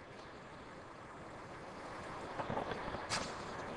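A wet fish fillet slaps down onto a hard surface.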